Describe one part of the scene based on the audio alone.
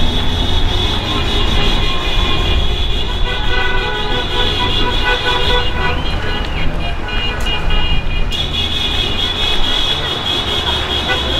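A car engine hums as a vehicle rolls slowly along a street.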